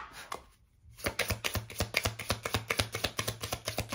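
Cards are shuffled by hand with quick, soft, papery flicks.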